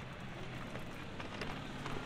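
Suitcase wheels rattle over pavement.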